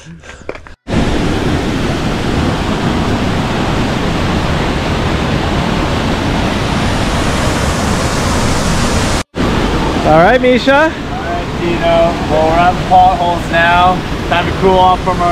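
Water rushes steadily through a rocky gorge.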